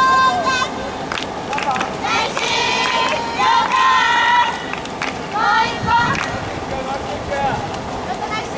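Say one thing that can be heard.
Swimmers splash and kick through the water.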